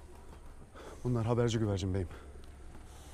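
A man speaks loudly and firmly nearby.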